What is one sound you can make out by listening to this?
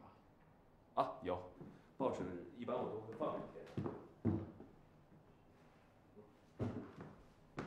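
A younger man answers calmly.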